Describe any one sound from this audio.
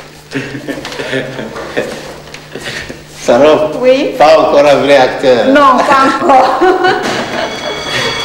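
A man talks and laughs cheerfully close by.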